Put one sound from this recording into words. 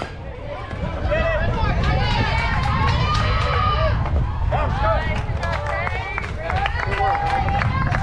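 Young girls cheer and shout with excitement nearby.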